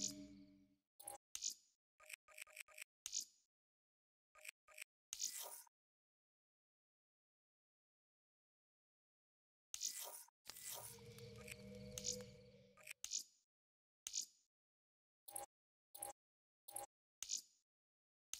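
Menu selection clicks and chimes sound in short bursts.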